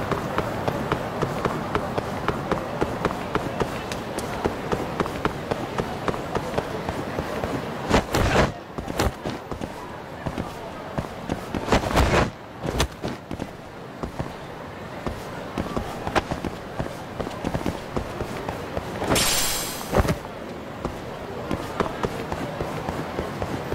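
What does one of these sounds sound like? Quick footsteps run on hard pavement.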